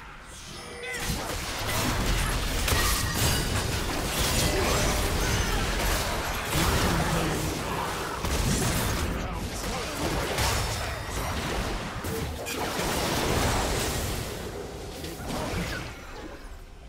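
Magic blasts crackle and boom in a fast fantasy battle.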